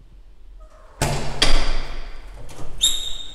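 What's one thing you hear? A heavy metal door handle clicks.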